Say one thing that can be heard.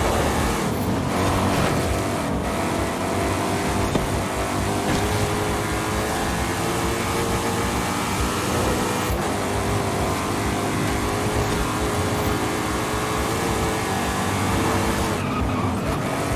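A car engine roars at high revs as the car speeds along.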